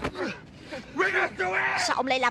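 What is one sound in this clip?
A young man shouts angrily up close.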